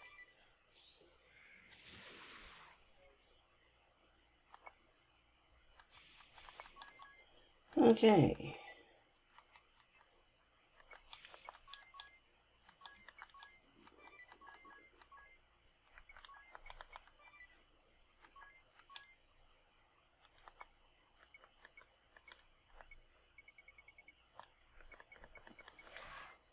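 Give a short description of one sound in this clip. Menu selection blips click quickly and repeatedly.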